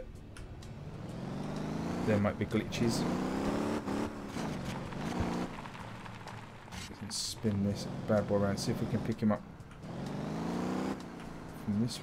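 A car engine revs and roars as the car speeds up.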